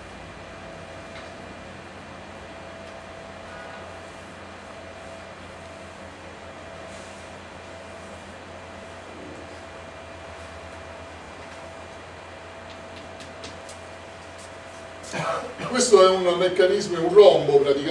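Chalk scrapes and taps on a blackboard.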